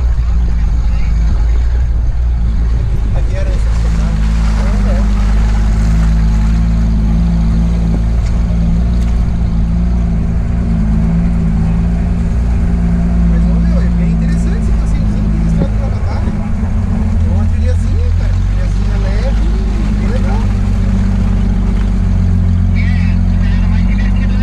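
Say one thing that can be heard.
A vehicle engine hums steadily at low pitch, close by.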